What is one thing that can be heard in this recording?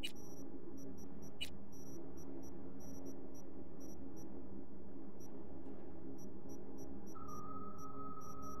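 Short electronic blips tick in quick bursts.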